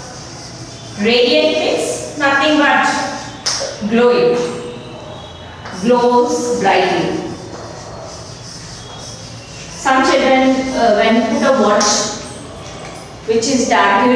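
A woman speaks clearly and slowly, as if teaching, close by.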